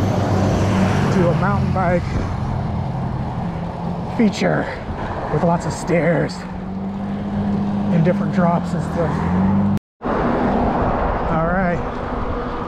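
Bicycle tyres hum on the asphalt.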